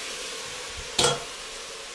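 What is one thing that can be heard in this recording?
A metal utensil clinks against a pot.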